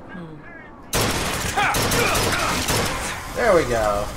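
A machine gun fires a burst of shots.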